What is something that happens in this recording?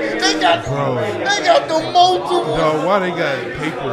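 A man laughs loudly into a microphone.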